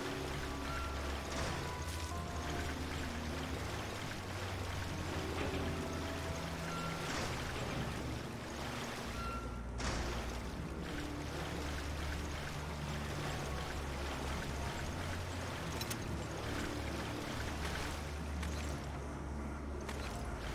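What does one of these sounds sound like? A person wades through knee-deep water with splashing steps.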